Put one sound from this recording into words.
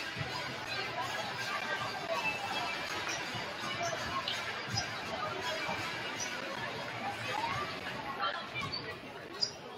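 Basketballs bounce on a hardwood floor.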